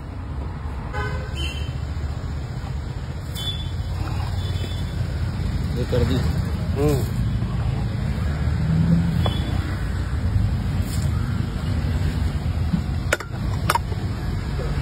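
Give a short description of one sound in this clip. A metal ladle clinks against a steel pot.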